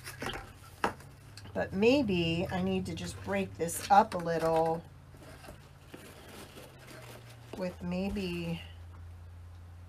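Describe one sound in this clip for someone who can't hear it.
Ribbon rustles and crinkles as hands handle it.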